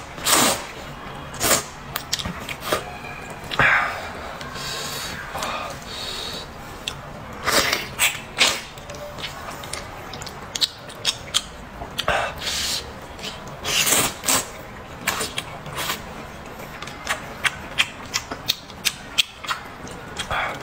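A young man chews food with wet, smacking sounds.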